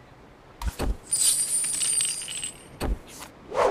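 Coins jingle and sparkle as they pour out.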